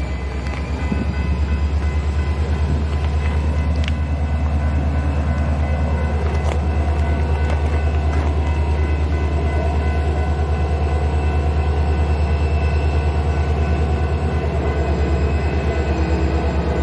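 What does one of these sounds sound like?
A diesel locomotive approaches along the rail line with a deep, pulsing engine rumble that grows louder.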